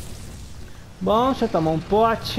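A large beast roars loudly in repeated bursts.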